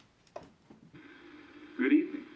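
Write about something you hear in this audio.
A man speaks through a television loudspeaker over static hiss.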